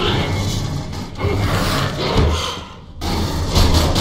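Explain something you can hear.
An alien creature shrieks up close.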